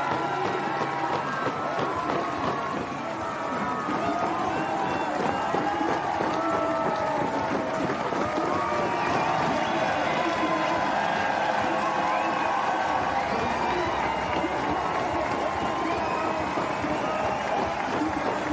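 A large outdoor crowd cheers and applauds steadily.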